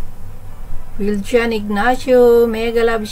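A middle-aged woman speaks over an online call.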